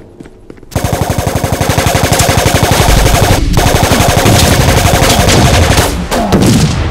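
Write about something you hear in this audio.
Rapid gunfire rattles loudly.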